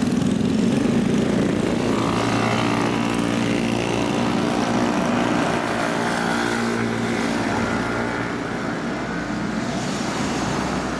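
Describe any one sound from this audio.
Motorcycles ride off one after another, engines revving and fading down the street.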